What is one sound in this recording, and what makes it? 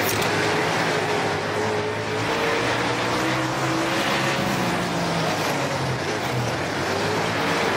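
A race car engine roars loudly, its pitch rising and falling with the throttle.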